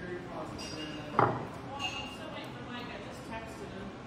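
A screwdriver is set down on a wooden bench with a knock.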